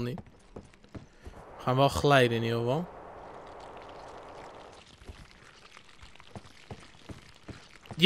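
Hands and feet knock on a wooden ladder while climbing.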